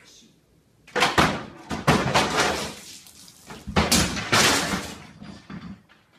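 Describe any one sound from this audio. A heavy object crashes onto a wooden floor and breaks.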